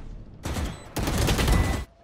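A rifle fires a rapid burst of loud shots.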